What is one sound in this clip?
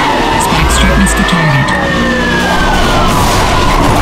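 Police sirens wail nearby.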